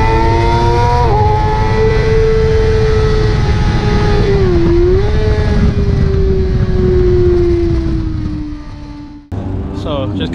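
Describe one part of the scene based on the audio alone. Wind rushes hard past a moving motorcycle.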